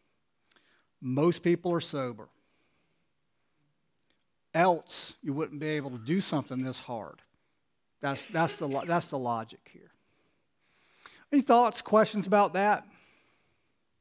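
A middle-aged man speaks slowly and deliberately through a microphone, with long pauses.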